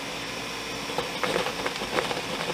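Chunks of food knock and rattle inside a blender jar.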